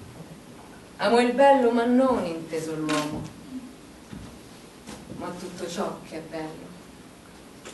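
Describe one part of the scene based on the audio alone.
A young woman speaks expressively nearby.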